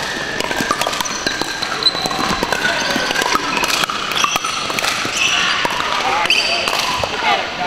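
Paddles hit plastic balls with sharp pops in a large echoing hall.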